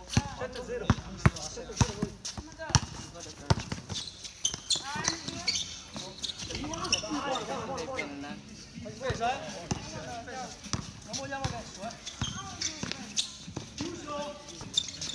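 A basketball bounces sharply on a hard outdoor court.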